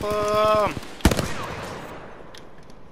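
A loud blast booms and rings out.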